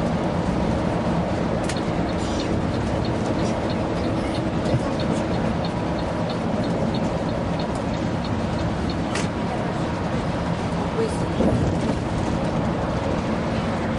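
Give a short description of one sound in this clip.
A vehicle's engine hums steadily as it drives along a highway.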